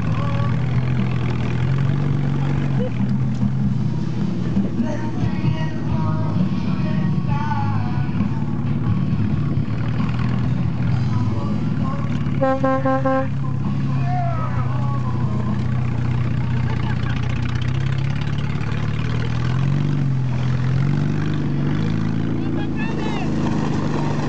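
A sled scrapes and rattles over dirt and grass.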